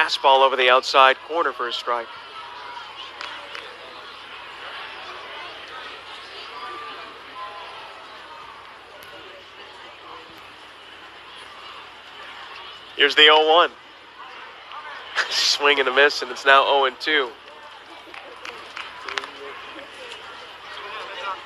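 A crowd murmurs in an open-air ballpark.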